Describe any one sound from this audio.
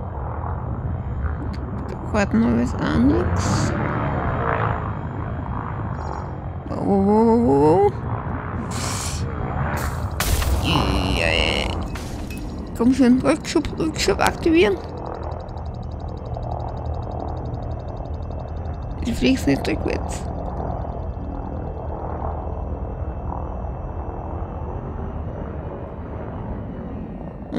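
A spaceship engine hums with a steady low drone.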